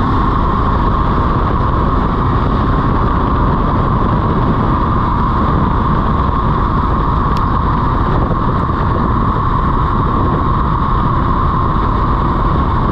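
Wind rushes loudly past at speed.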